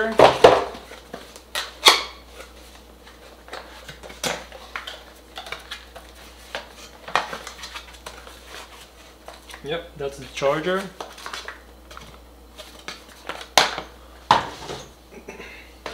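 Cardboard rustles and scrapes as a small box is opened.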